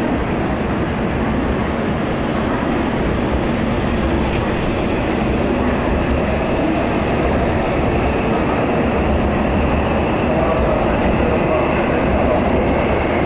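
A high-speed train rushes past close by with a loud, steady roar.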